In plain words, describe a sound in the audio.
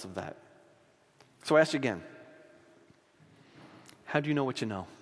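A middle-aged man speaks slowly and deliberately into a microphone, in short phrases with pauses.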